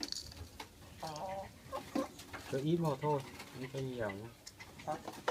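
A hen clucks close by.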